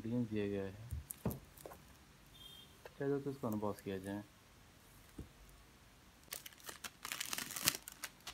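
Plastic wrap crinkles as a wrapped box is turned over in a hand.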